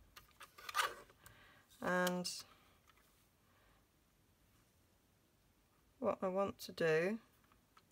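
A paper trimmer blade slides and cuts through card.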